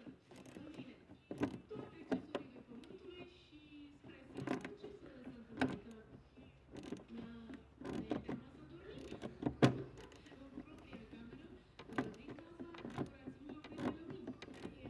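Small metal parts click and knock as a hand works at them.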